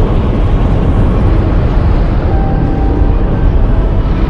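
Giant serpents slither and rumble with a deep, steady roar.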